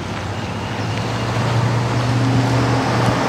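A diesel excavator engine runs.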